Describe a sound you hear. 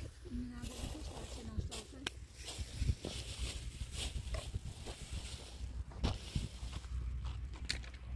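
A plastic bag rustles as a man handles it.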